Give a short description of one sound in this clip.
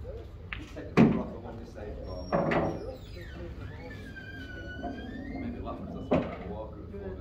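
Pool balls clack together and roll across the table.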